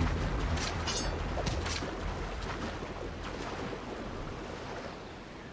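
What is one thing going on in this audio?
Water splashes as a swimmer strokes through the sea.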